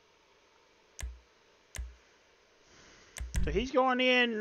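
Short interface clicks sound as a menu is browsed.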